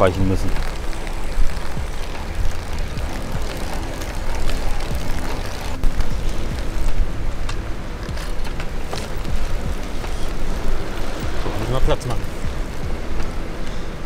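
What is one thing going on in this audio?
Small wheels roll and hum steadily on asphalt.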